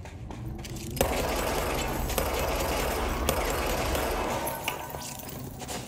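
Rocks crash and rumble loudly as they break apart.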